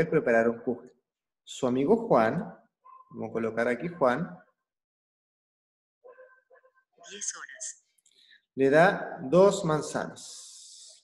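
A young man speaks calmly and clearly into a close microphone, in short phrases with pauses.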